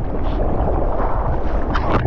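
A hand splashes through the water.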